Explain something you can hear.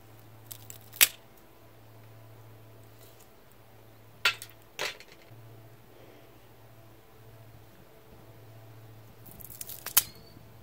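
Dried mushroom pieces tap and rustle against a metal tray.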